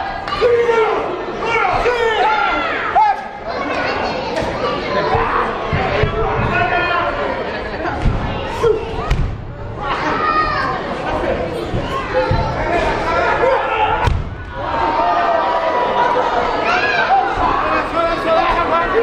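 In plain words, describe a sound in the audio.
A large crowd shouts and cheers in an echoing hall.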